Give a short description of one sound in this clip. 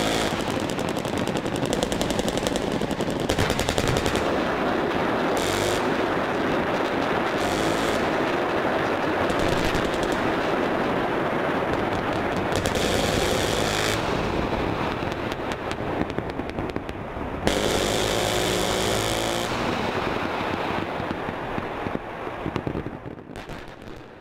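Explosions boom and rumble in the distance, one after another.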